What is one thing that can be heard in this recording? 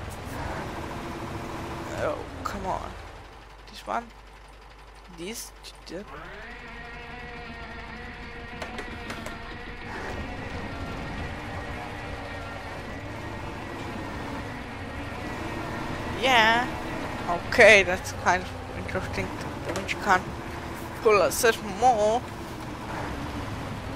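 A truck engine drones steadily, then revs higher.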